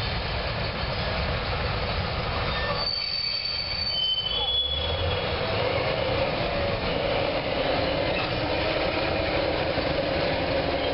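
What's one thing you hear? A diesel locomotive engine rumbles steadily as it rolls slowly along the track.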